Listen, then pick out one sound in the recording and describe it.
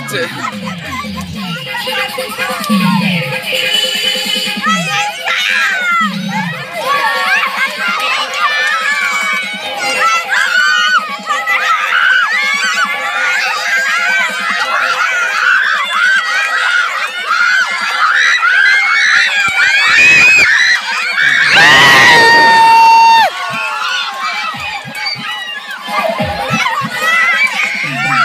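Water splashes as people wade through a shallow pond.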